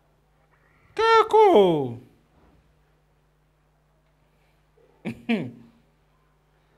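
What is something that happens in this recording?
A man cries out loudly in surprise.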